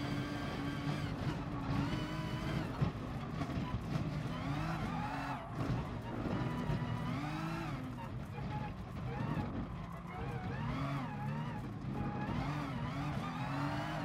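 A racing car engine revs rise and drop repeatedly as gears change through corners.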